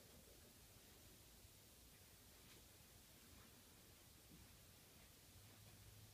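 A small dog's paws patter on carpet.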